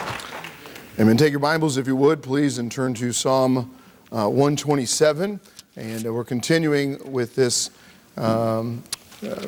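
A man speaks calmly into a microphone, heard through a loudspeaker in an echoing hall.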